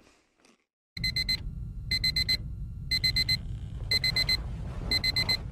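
A toy truck plays loud, repeated electronic beeps.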